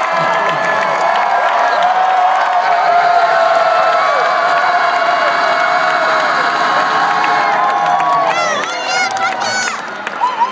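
A large crowd cheers and screams loudly in an echoing hall.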